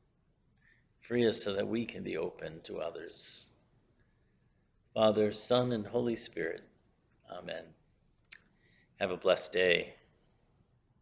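A middle-aged man speaks calmly and close to a microphone, in short phrases with pauses.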